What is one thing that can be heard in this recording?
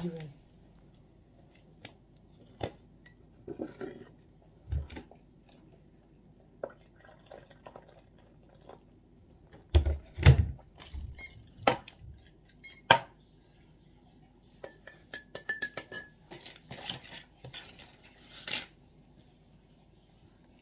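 A woman chews and eats close to a microphone.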